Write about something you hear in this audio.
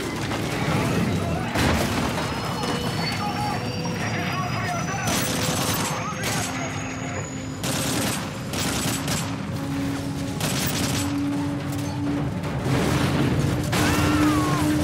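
Engines roar and drone steadily.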